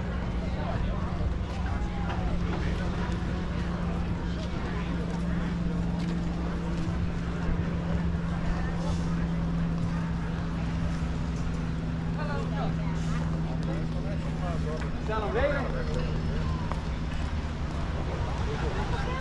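People chatter at a distance outdoors.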